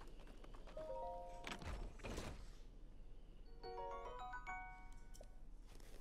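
A treasure chest creaks open, followed by a rising fanfare of tones.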